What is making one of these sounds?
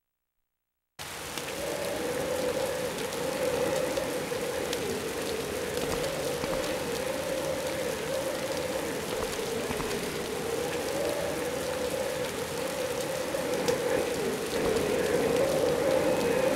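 A fire crackles and roars.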